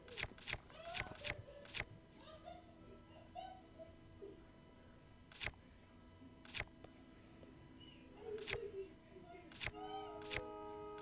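Soft menu clicks tick quickly as a selection moves from item to item.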